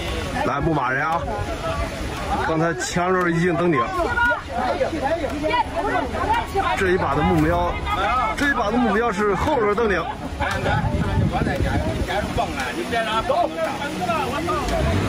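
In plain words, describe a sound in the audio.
A crowd of men and women talks and calls out nearby outdoors.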